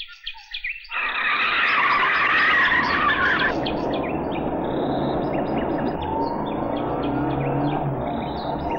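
A car engine roars as a car speeds past.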